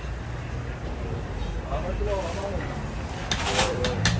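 Rice pours and patters into a large pan.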